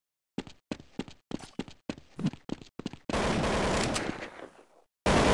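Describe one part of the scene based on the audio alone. A rifle fires short bursts of sharp, echoing shots.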